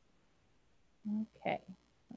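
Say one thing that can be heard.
A woman speaks briefly over a microphone.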